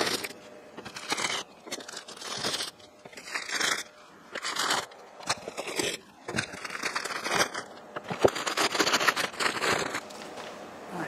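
Paper crinkles and rustles as it is unwrapped.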